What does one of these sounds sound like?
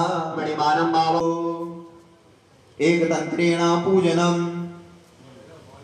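A man chants in a loud, sustained voice through a loudspeaker.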